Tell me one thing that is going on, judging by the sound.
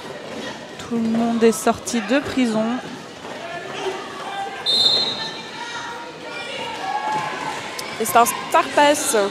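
Roller skates roll and scrape across a hard floor in an echoing hall.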